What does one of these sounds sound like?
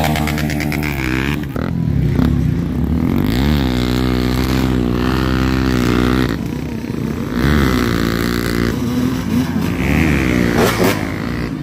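A motorcycle engine revs loudly, rising and falling in pitch.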